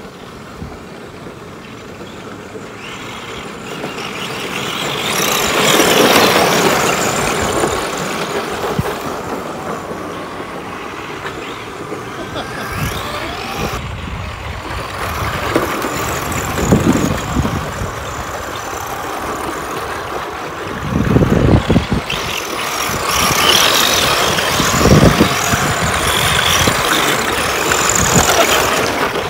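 Small electric model cars whir as they race past on a dirt track.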